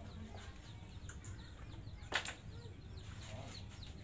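Wooden pucks clatter together as a hand gathers them on a wooden board.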